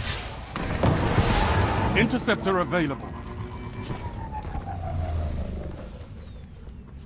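A hoverbike's engine whooshes as it speeds along.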